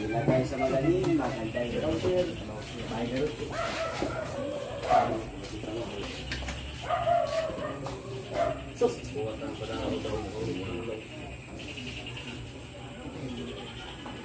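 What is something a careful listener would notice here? Several men talk casually nearby.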